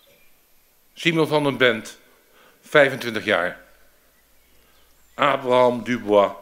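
An elderly man speaks slowly and formally through a microphone outdoors.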